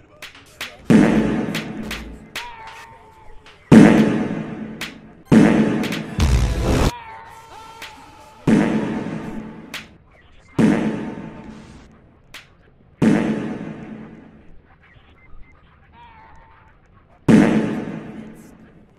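Loud blasting bursts go off again and again, each fading away with a rumbling echo.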